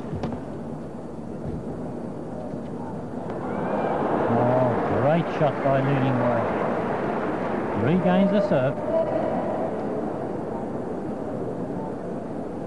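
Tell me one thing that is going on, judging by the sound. A racket strikes a shuttlecock with sharp pops.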